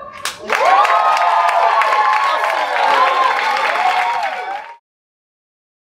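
A young woman laughs near a microphone.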